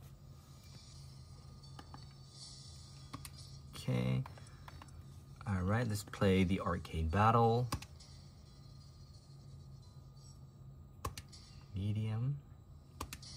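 Buttons click softly on a handheld game console.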